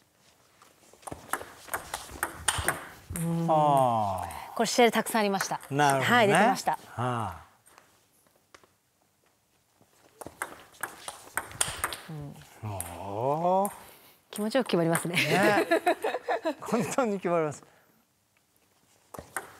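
Ping pong balls click sharply off paddles and a table in a quick rally.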